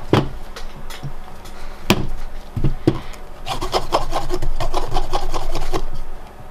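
A plastic game cartridge knocks and clicks as hands handle it.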